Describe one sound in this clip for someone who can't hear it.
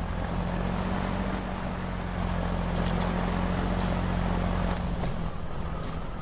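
A truck engine rumbles steadily at a distance.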